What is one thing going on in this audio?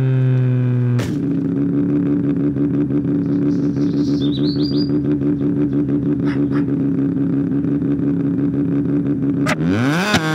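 A car engine idles with a steady hum.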